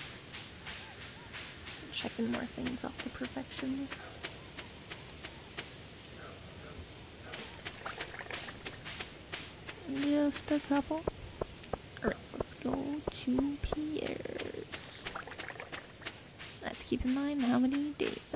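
Footsteps patter quickly along a path.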